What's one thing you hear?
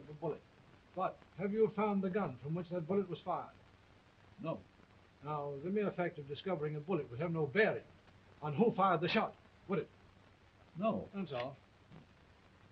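A man speaks intently.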